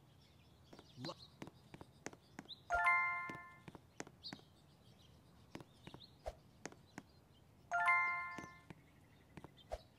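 Light footsteps tap quickly on hard ground.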